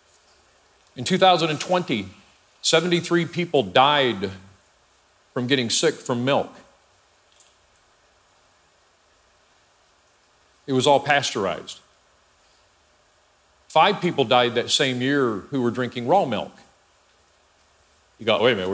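A middle-aged man speaks calmly into a microphone, in bursts with long pauses.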